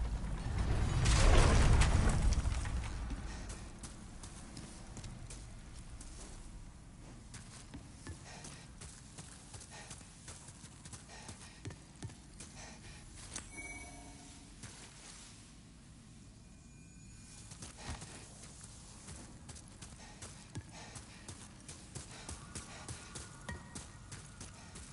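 Footsteps crunch quickly over gravel and stone.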